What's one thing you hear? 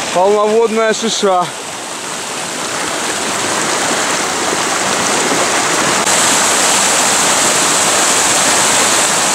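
A shallow stream rushes and gurgles over rocks.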